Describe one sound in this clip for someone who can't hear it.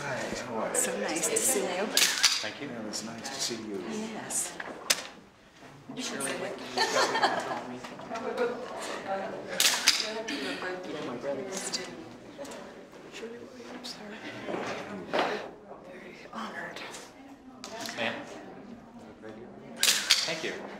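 Elderly women talk and laugh in greeting.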